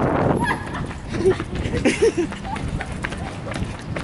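A young man laughs close to the microphone.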